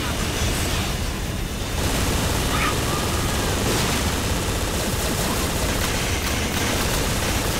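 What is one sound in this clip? A hover vehicle's engine hums steadily.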